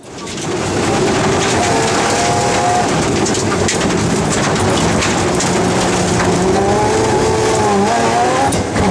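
A rally car engine roars loudly from inside the car, revving up and down.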